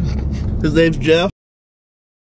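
A young man speaks with animation close by.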